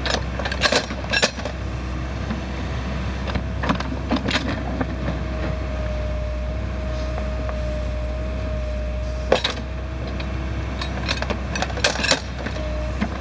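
A backhoe bucket scrapes and knocks against dirt and stones.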